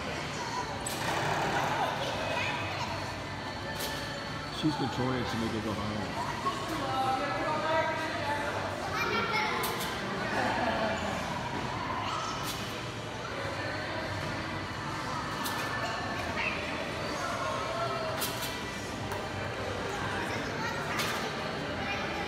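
A trampoline thumps with each bounce, heard in a large echoing hall.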